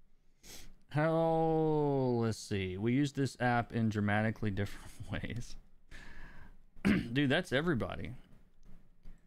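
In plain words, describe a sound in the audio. A man speaks with animation close to a microphone, drawing out some words.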